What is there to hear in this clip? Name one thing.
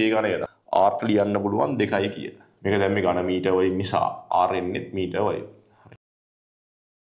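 A young man speaks clearly and steadily into a close microphone.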